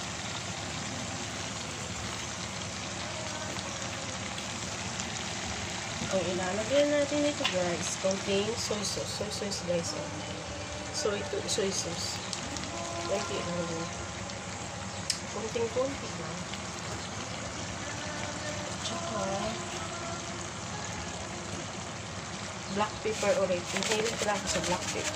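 Vegetables sizzle steadily in a hot pan.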